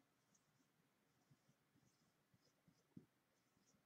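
A marker squeaks faintly across paper.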